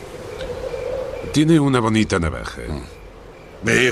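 An elderly man speaks in a low voice.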